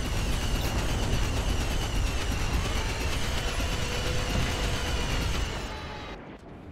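A starfighter engine roars loudly.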